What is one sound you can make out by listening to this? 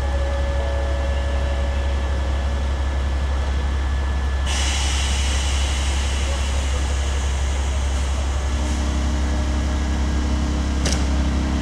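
An electric locomotive hums as it pulls a train slowly in.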